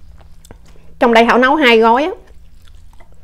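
A woman speaks briefly and loudly, close to a microphone.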